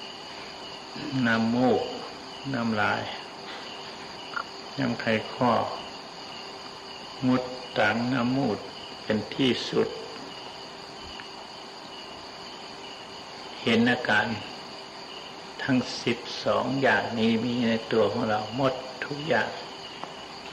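An elderly man speaks calmly and slowly, with long pauses, close to a microphone.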